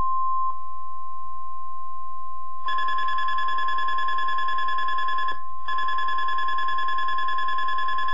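A loudspeaker plays a steady high tone with a buzzing pulse.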